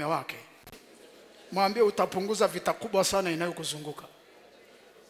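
A man preaches with animation into a microphone in a large echoing hall.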